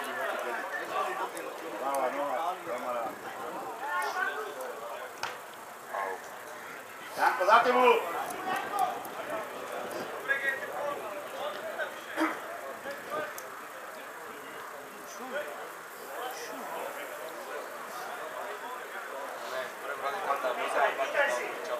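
Men in a small crowd nearby chat and call out outdoors.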